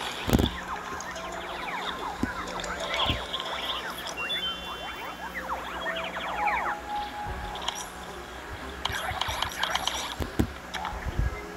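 Soft game clicks tap now and then.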